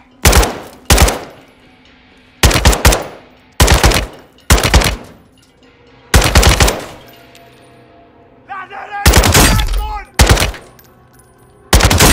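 A rifle fires in short, loud bursts of echoing bangs.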